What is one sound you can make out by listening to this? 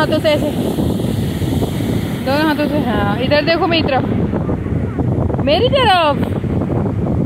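A young girl calls out excitedly in high, sing-song shouts.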